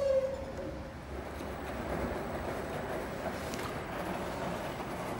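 Wet laundry tumbles and sloshes in a front-loading washing machine drum.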